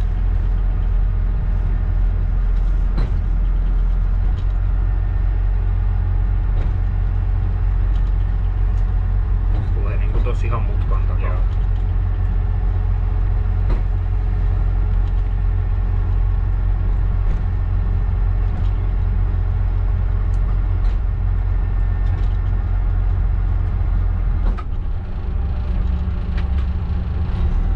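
A train engine rumbles steadily as the train rolls along the tracks.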